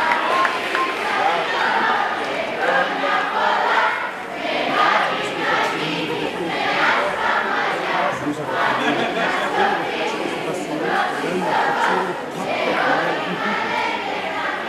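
A crowd of young women and girls chatters and cheers excitedly nearby.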